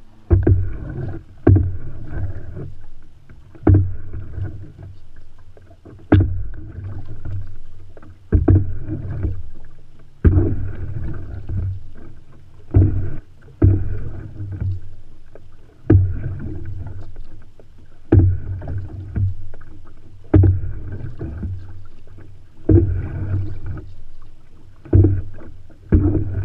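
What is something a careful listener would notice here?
A paddle knocks against the side of a canoe.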